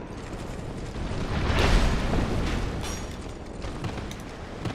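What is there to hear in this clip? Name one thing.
A burst of smoke whooshes with a deep rumble.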